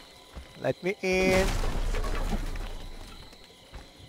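A wooden door splinters and crashes open.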